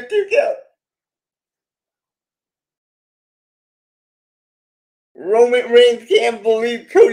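A middle-aged man speaks cheerfully over an online call.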